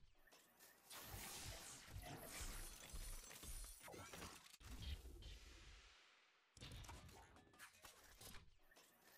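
An electric crackle and whoosh bursts out.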